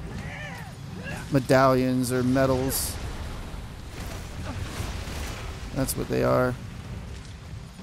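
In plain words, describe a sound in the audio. Magic blasts burst with sharp crackling whooshes.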